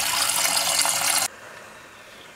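Water pours into a steel pot.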